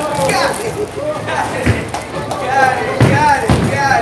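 A bowling ball thuds and rolls down a lane.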